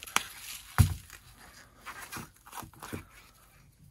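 A plastic cap clicks as it is unscrewed from a jar.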